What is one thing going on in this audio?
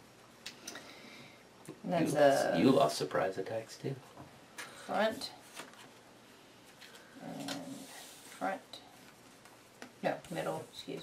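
Playing cards are placed with soft taps on a table.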